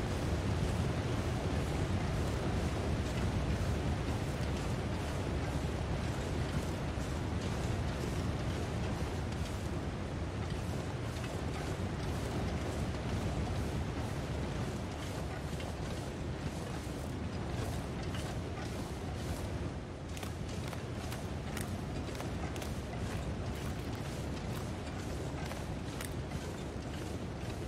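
Footsteps crunch through snow.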